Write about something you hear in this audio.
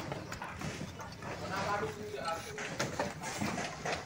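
Pliers twist and snip steel wire.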